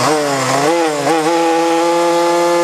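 Small motorbike engines roar steadily as the bikes pull away.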